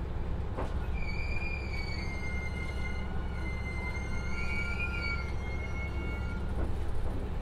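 Train brakes squeal with a wavering high whine as the train slows to a stop.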